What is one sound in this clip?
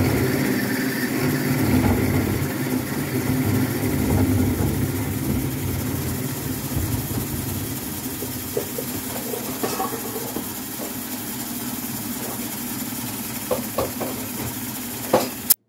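A lathe hums steadily as it spins.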